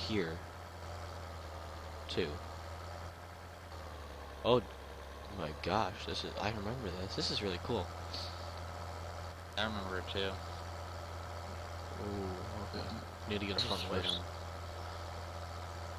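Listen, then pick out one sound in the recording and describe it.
A tractor engine hums steadily at a low pitch.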